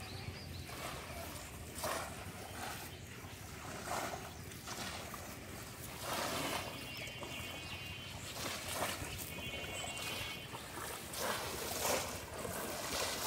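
Several men wade and splash through shallow water.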